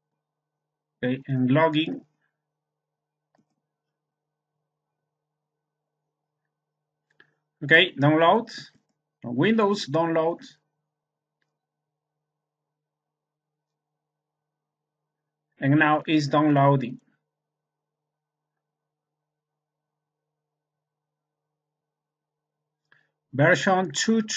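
A man speaks calmly in short phrases close to a microphone.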